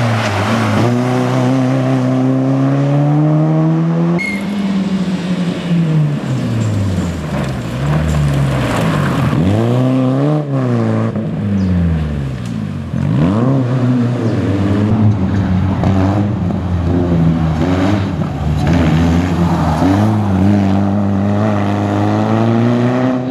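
A rally car engine revs hard, rising and falling as the car speeds up and slows down.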